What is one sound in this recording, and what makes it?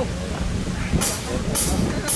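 Cymbals crash on a drum kit.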